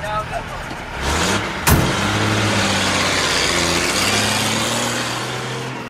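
A truck engine rumbles as the truck pulls away.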